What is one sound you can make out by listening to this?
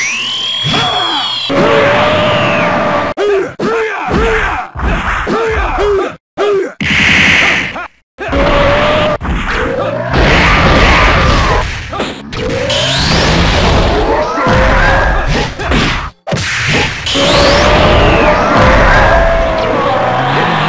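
Punches and kicks land with sharp hits.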